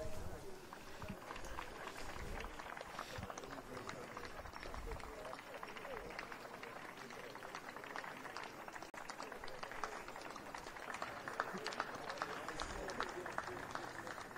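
A crowd claps steadily outdoors.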